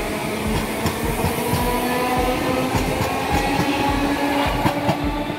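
A train rumbles past close by, its wheels clattering rhythmically over the rail joints.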